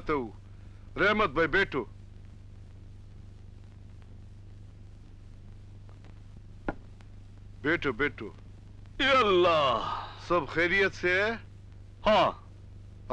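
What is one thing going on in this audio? A man answers calmly close by.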